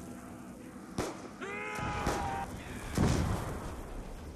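A gun fires a few loud, booming shots.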